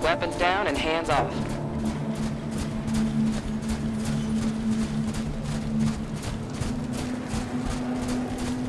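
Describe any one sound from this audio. Heavy footsteps run quickly over hard ground.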